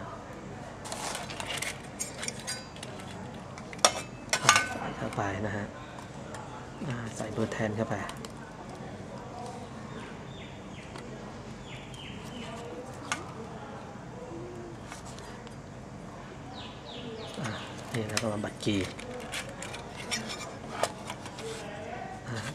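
A metal circuit board knocks and clatters as it is handled.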